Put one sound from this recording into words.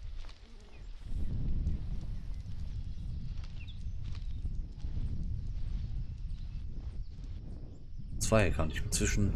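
Footsteps rustle through dry leaves and undergrowth.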